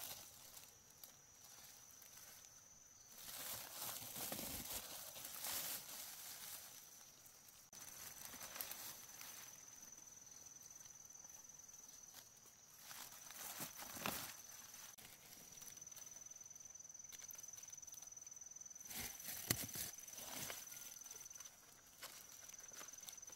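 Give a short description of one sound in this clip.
Dry leaves and undergrowth rustle as a hand reaches through them.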